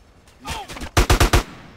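Gunfire rattles in a quick burst.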